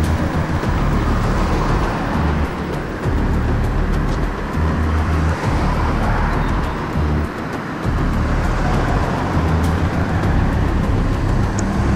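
Traffic hums and rumbles steadily on a nearby road.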